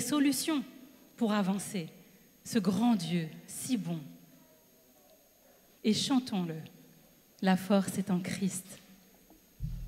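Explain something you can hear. A woman speaks with feeling into a microphone over loudspeakers in a large echoing hall.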